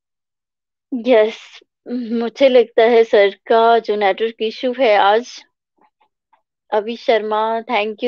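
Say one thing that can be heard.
A woman speaks warmly and with animation over an online call.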